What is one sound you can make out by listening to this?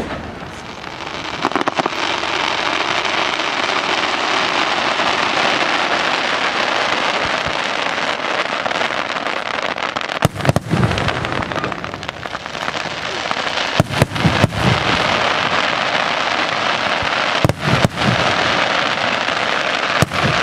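Fireworks crackle and fizzle steadily.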